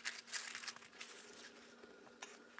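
Hands rub and smooth crinkling paper.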